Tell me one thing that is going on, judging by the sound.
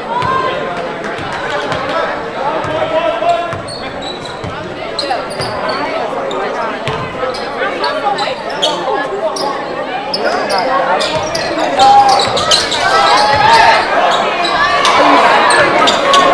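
Basketball shoes squeak sharply on a wooden floor.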